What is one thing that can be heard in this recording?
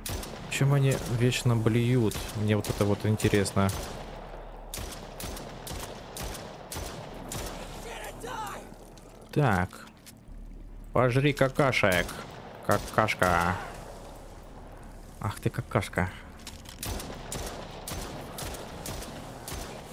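A pistol fires shots one after another.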